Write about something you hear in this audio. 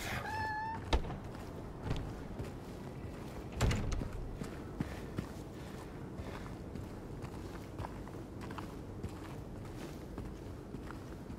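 Footsteps crunch on rough pavement outdoors.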